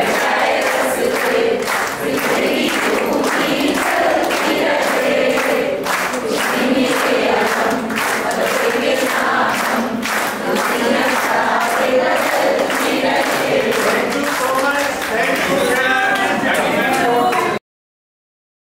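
A large group of women and men sing together in an echoing hall.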